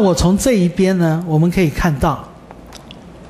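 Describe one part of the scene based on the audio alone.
A man lectures calmly through a microphone.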